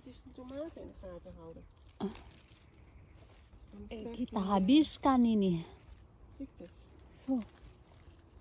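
Leaves rustle softly as a hand pulls at a plant.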